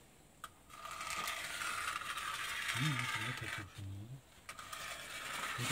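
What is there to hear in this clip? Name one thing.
A hand slides along a metal strip with a scraping rustle.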